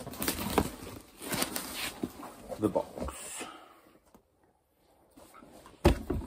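Cardboard rustles and scrapes as a package is handled.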